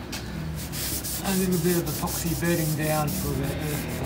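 A cloth rubs and wipes across a hard surface.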